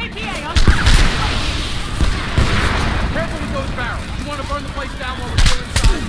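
A fire crackles and roars nearby.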